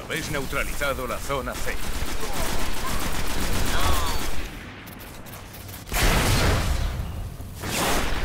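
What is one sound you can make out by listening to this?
Rapid gunfire rattles in short bursts.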